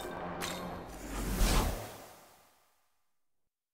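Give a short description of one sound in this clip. A shimmering magical whoosh swells and then fades away.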